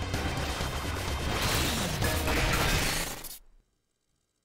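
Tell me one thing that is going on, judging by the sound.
Video game blasts and explosions crash loudly.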